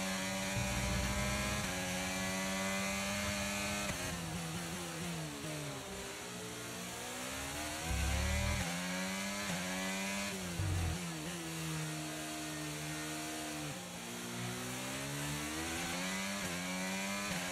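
A racing car engine whines at high revs, rising and dropping as gears shift.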